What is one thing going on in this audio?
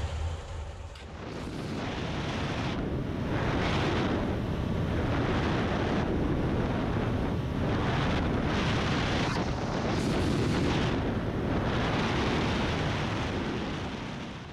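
A motorcycle engine drones steadily while riding.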